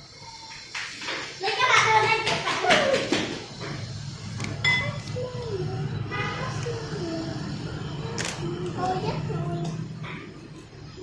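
Young girls talk with animation close by.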